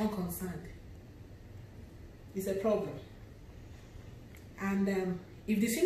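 A woman speaks slowly and clearly close to the microphone, with pauses.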